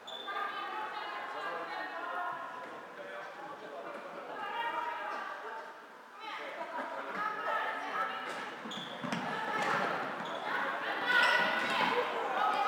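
Young women shout to one another in a large echoing hall.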